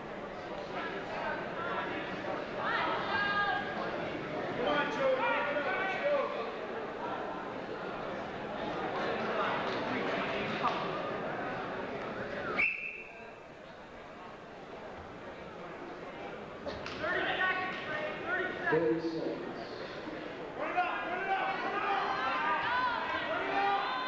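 Spectators shout and cheer nearby.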